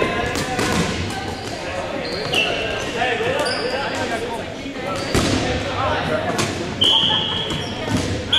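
A crowd of children and adults shout and chatter in a large echoing gym.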